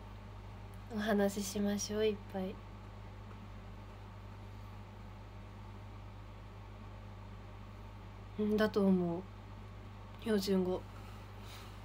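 A young woman speaks softly in short bursts, close by.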